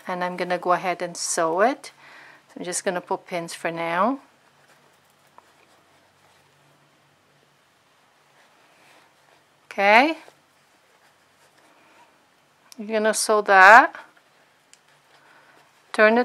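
Fabric rustles softly as it is folded and handled.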